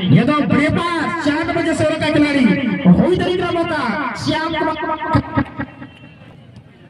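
A crowd of spectators shouts and cheers in the distance.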